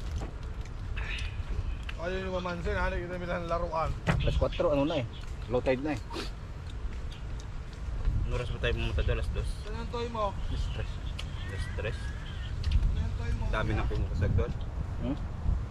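Young men talk and laugh casually close by.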